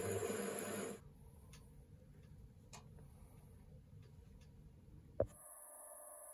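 A lathe motor hums quietly as the chuck slows to a stop.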